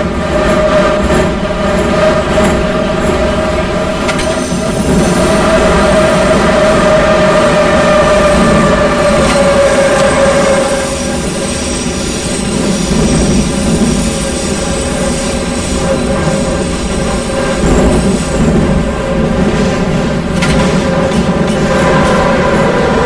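An underground train's electric motor whines steadily as the train runs.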